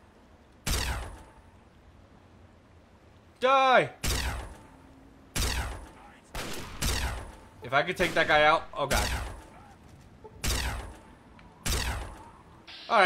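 A plasma rifle fires repeated sharp zapping shots.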